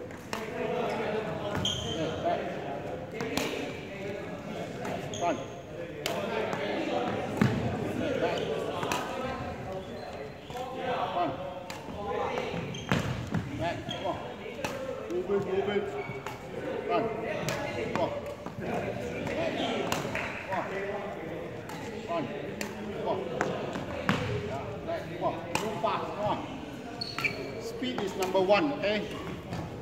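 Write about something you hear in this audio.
Shoes squeak and thud on a wooden floor in a large echoing hall.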